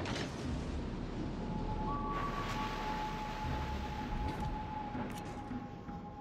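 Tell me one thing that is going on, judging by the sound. Ship guns fire with heavy booms.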